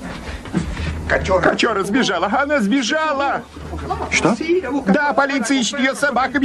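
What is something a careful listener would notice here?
An elderly man speaks loudly and with animation.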